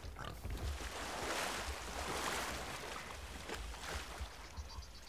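Water sloshes and splashes as someone wades through the sea.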